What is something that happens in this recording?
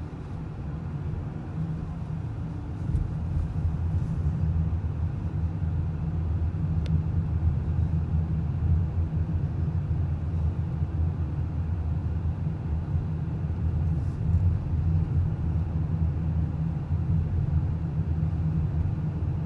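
A car engine hums low and steady from inside a moving car.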